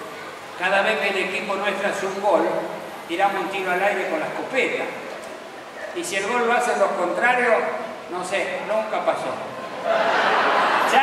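An older man speaks with animation into a microphone over loudspeakers.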